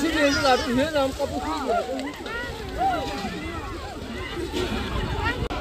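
A crowd of women chatter and call out close by.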